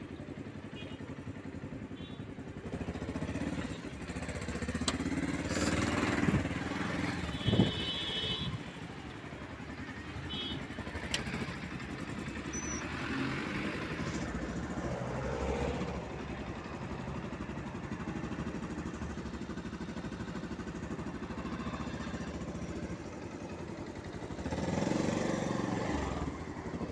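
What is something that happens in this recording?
Car engines hum in slow traffic nearby.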